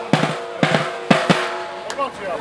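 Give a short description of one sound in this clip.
A drum is struck with loud, sharp beats.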